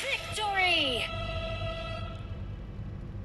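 A bright game victory chime sweeps down and rings out.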